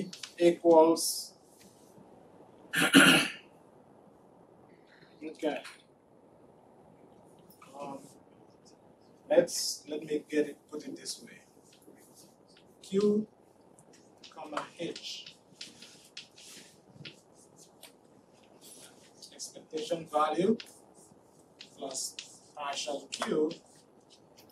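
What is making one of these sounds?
A man lectures in a room, heard through a microphone with pauses between phrases.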